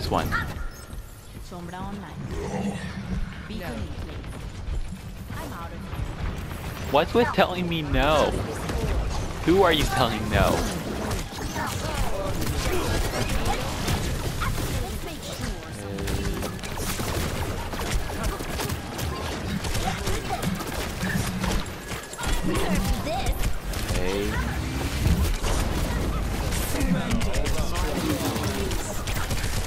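Game weapons fire and explosions boom repeatedly.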